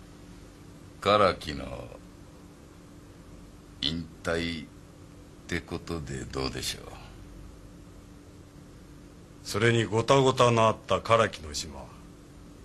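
Men speak in short, tense bursts close by, with pauses between.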